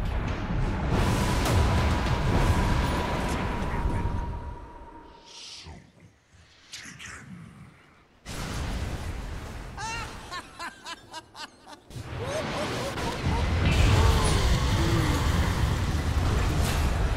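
Fiery blasts roar and crackle in bursts.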